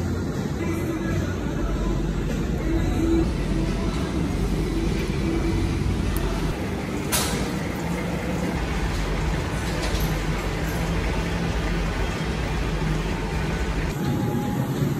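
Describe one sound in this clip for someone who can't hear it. An exercise bike whirs steadily as its pedals turn.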